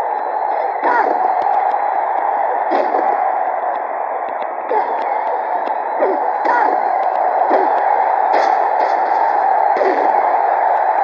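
Blows land with sharp thuds.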